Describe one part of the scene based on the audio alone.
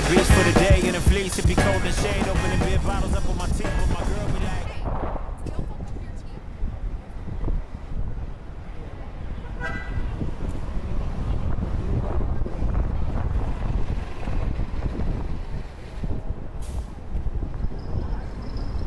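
Inline skate wheels roll and rumble on asphalt.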